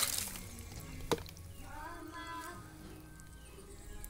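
Dry corn kernels rattle as a hand scoops them into a plastic cup.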